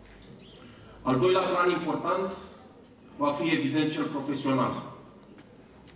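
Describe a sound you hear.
A man speaks formally into a microphone over a loudspeaker outdoors.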